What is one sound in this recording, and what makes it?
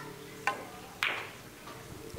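Billiard balls click sharply together.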